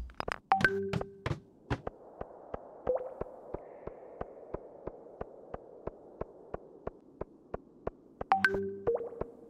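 Footsteps tap quickly and evenly on stone.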